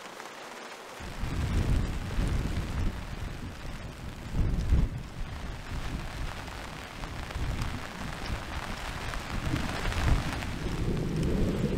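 Wind gusts and rumbles against tent fabric.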